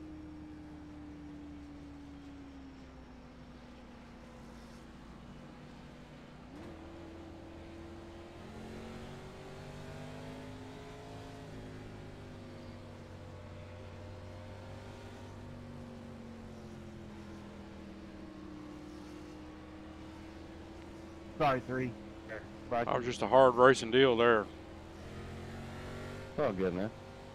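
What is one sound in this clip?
A race car engine drones steadily, its pitch rising and falling gently.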